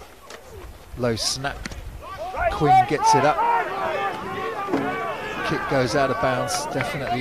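A group of young men cheer loudly nearby.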